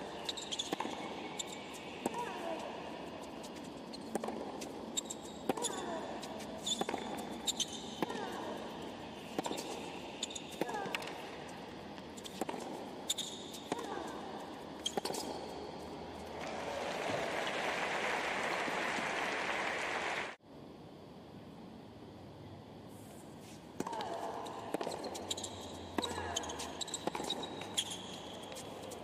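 Tennis rackets strike a ball back and forth in a rally.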